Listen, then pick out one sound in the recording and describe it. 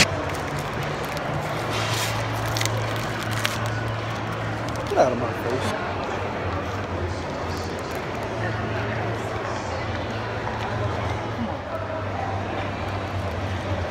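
A paper ticket crinkles in someone's hands.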